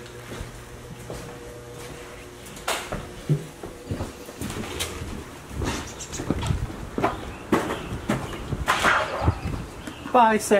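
Footsteps thump on hollow wooden boards.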